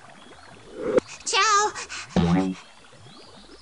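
A cartoon sea creature makes a wobbly, bubbling sound effect.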